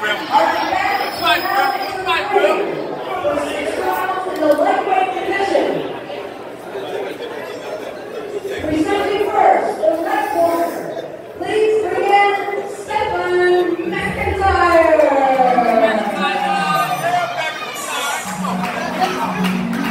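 Several young men talk and shout excitedly close by.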